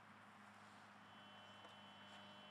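A metal detector gives a steady high beep.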